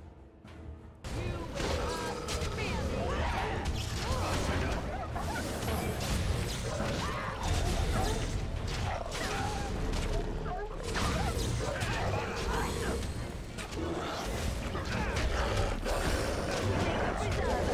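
Weapons clash loudly in a fight.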